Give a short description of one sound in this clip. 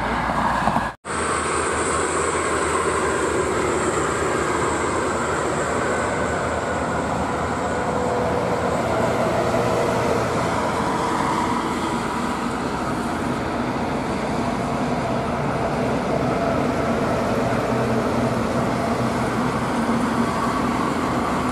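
A heavy truck's diesel engine rumbles as it approaches slowly.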